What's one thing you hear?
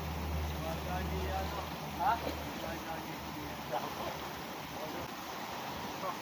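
Water splashes as a man wades through a stream.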